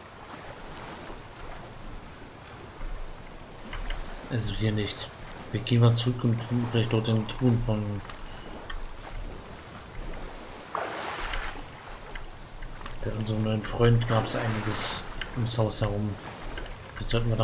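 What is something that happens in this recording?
Water splashes steadily as a swimmer paddles through it.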